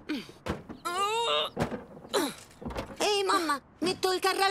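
A young boy speaks cheerfully and brightly.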